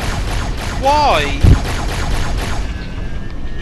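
A laser weapon fires a buzzing, crackling beam.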